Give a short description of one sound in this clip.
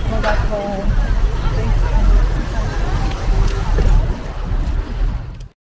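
A young woman speaks close to the microphone.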